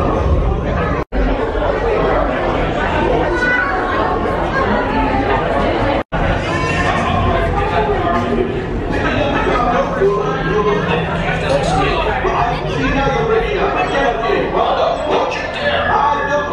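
A crowd of people chatters close by in an echoing indoor space.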